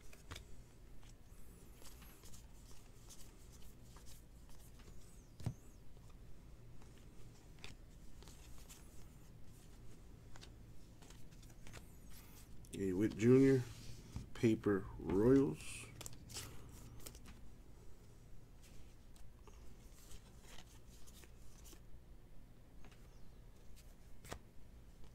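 Stiff trading cards softly click and slide as they are flipped through by hand.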